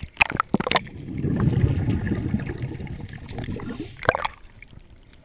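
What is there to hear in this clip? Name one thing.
Bubbles from a scuba regulator rumble and gurgle underwater.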